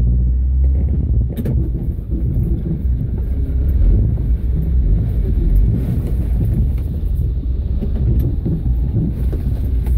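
An off-road vehicle's engine idles.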